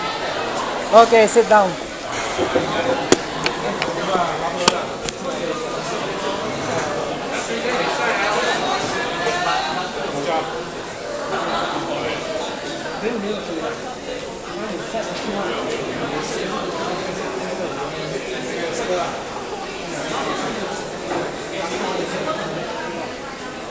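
A crowd murmurs in the background of a large echoing hall.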